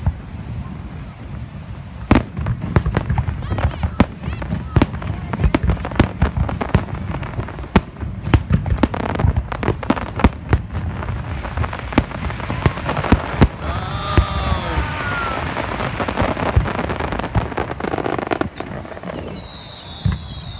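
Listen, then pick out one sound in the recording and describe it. Fireworks crackle and fizzle.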